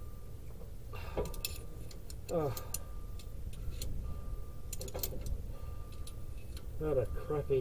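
Metal parts of a car brake clink and tap under a hand.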